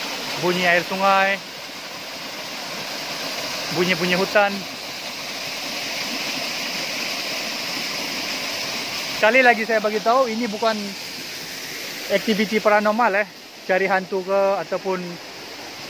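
A waterfall splashes steadily nearby.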